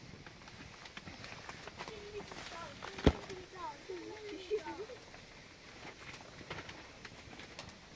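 Plastic sheeting rustles and crackles in the wind.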